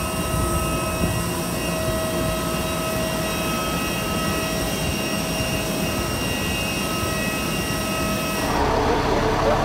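A jet engine whines steadily nearby.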